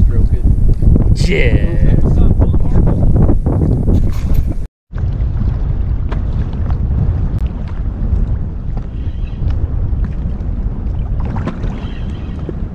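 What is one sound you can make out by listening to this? Small waves lap and splash against a boat.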